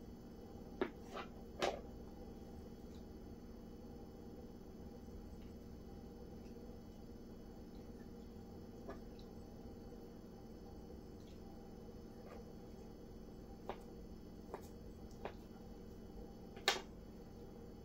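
A knife clicks and taps against a plastic plate.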